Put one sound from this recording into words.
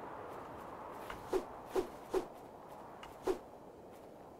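Short sharp hits strike a stone slab.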